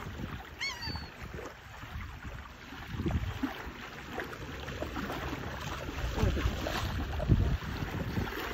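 A hooked fish thrashes and splashes in shallow water.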